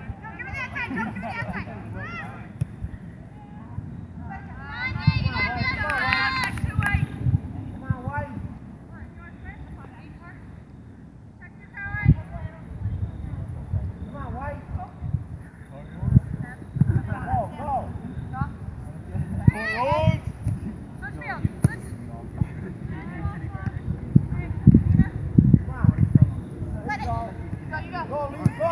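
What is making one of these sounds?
Young women shout and call out across an open field outdoors.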